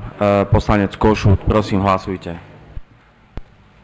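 A man speaks into a microphone with animation.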